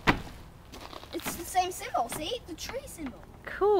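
A young boy speaks up close.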